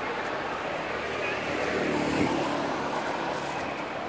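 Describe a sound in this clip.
A motorcycle passes by on the street.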